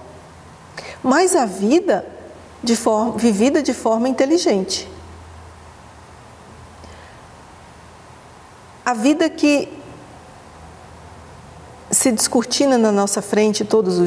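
A middle-aged woman speaks calmly and close to a microphone, with pauses.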